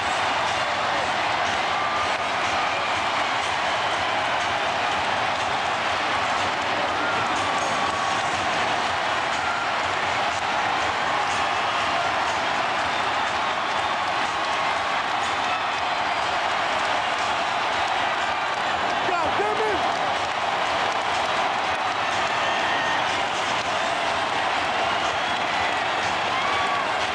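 A huge crowd cheers and roars loudly in a large echoing arena.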